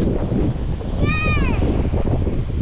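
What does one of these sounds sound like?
A young child calls out in a high voice nearby.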